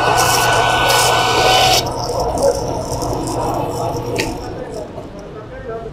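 A band saw whines as it cuts through meat and bone.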